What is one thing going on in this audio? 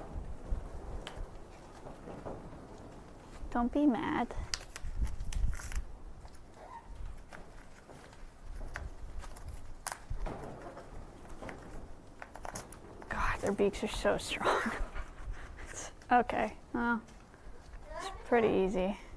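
A parrot chews and crunches on a crinkly paper toy.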